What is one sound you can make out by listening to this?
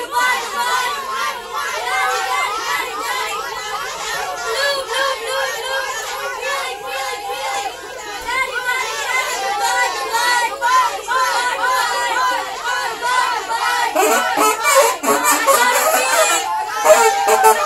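A crowd of adults chatters close by.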